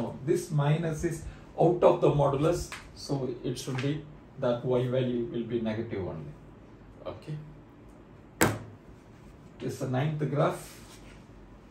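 A middle-aged man speaks calmly nearby, explaining.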